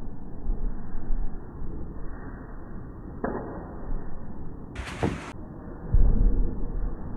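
Bare feet thud and shuffle on a padded floor.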